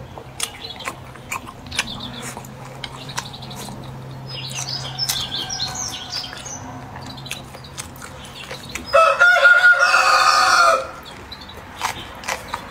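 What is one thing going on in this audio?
A young woman chews and crunches food close to the microphone.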